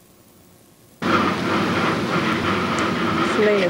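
A fountain splashes steadily outdoors.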